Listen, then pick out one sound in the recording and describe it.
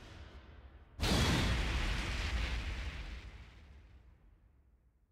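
A heavy boom crashes and rumbles away slowly.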